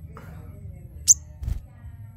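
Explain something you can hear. A small bird gives a short, high chirp.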